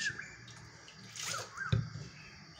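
Water pours and splashes into a metal bowl.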